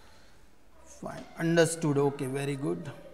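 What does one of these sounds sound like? A man speaks clearly into a close microphone.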